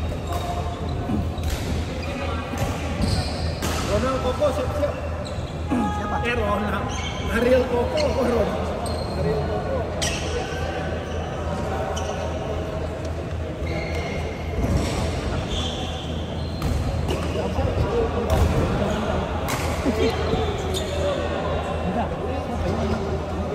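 Shuttlecocks are struck with rackets, with sharp pops echoing through a large hall.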